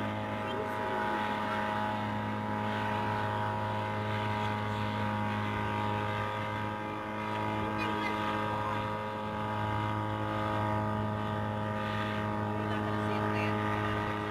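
A helicopter drones steadily overhead at a distance.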